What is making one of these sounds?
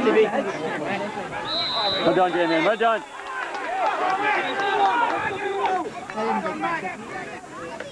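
Several men shout and call out excitedly close by, outdoors.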